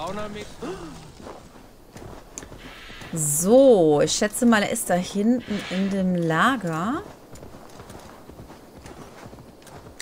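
A horse's hooves thud on soft ground at a trot.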